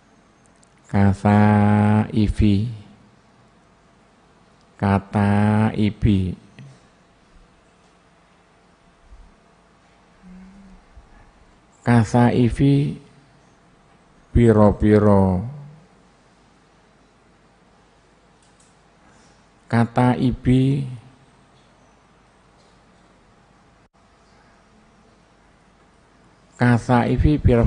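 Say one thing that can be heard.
An elderly man reads aloud in a chanting voice through a microphone, in short phrases with pauses between them.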